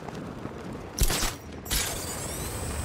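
A grappling line fires with a sharp whoosh and snap.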